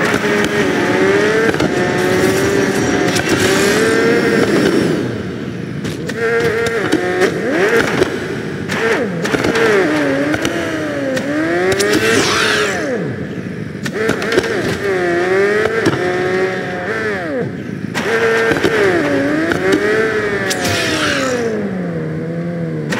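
A motorbike engine whines and revs up and down.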